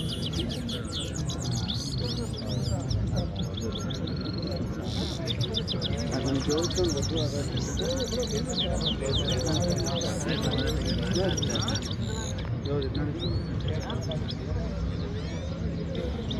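Caged finches chirp and twitter in rapid bursts close by.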